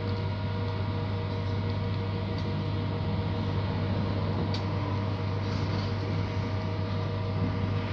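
A bus engine hums steadily from inside.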